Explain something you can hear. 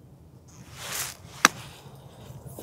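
A golf club strikes sand with a sharp thud.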